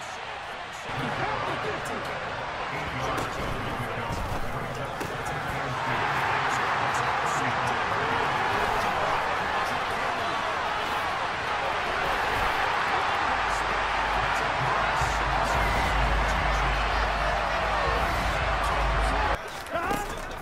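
A large stadium crowd roars and cheers, growing louder.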